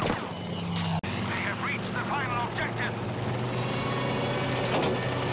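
An airplane engine drones steadily.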